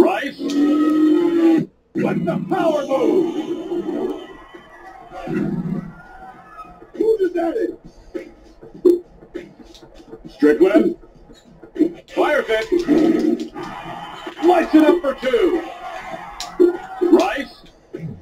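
Basketball video game sounds play from a television.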